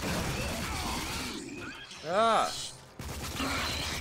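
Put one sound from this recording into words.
An explosion bursts with a loud roar.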